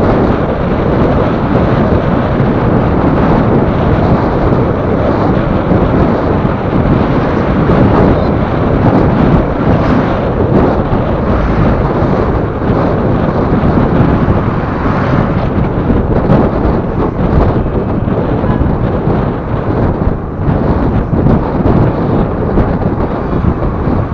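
Wind rushes loudly past a moving vehicle.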